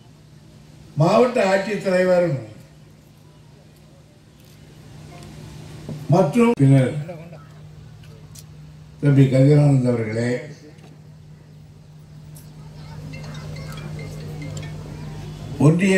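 An older man speaks forcefully through a microphone and loudspeakers, in short bursts with pauses.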